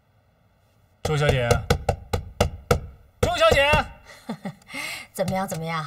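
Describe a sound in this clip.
A middle-aged woman speaks with animation nearby.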